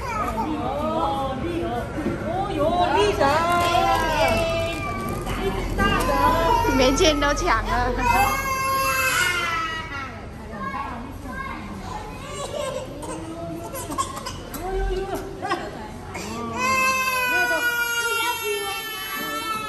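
A toddler cries and wails loudly close by.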